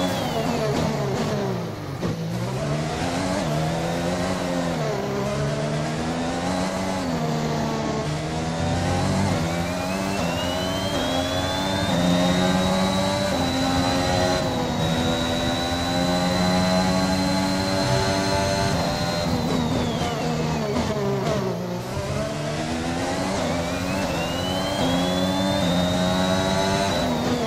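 A racing car engine screams, revving up through the gears and dropping sharply when braking.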